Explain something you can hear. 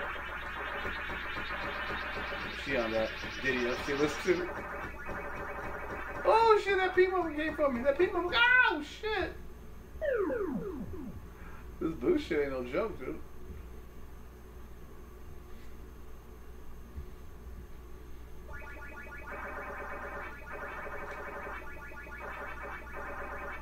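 Video game music and bleeps play.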